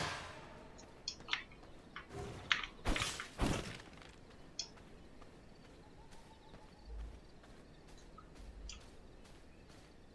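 Footsteps tap softly on the ground.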